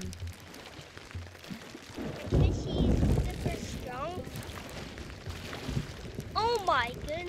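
Stormy ocean waves crash and roll.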